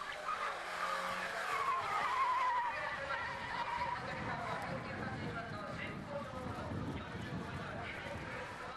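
A small car engine revs and whines as the car races around a track.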